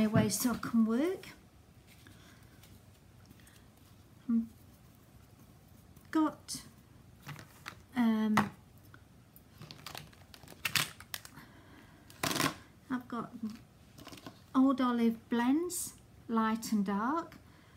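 A woman speaks calmly close by, in short phrases with pauses.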